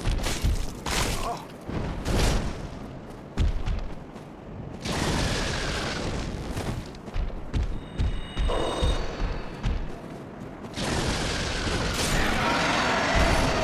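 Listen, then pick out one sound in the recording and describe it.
A large creature's wings beat heavily.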